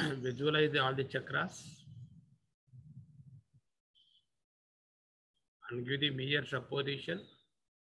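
An elderly man speaks calmly and slowly, close by, with pauses.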